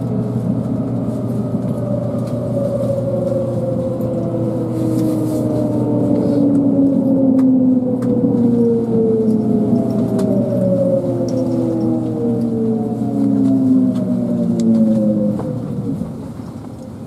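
A train rumbles along the rails and slows to a stop.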